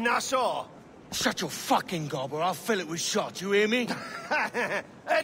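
A second man answers in a low, threatening voice.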